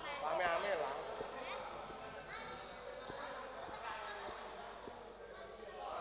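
A crowd of young men chatters and shouts in a large echoing hall.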